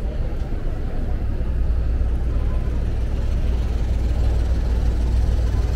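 Car engines hum and tyres roll on a busy street.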